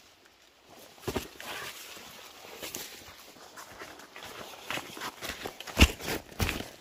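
Footsteps crunch and rustle through dry leaves and twigs.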